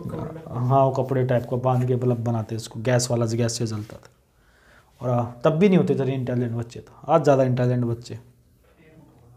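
A man explains calmly and clearly, close to a microphone.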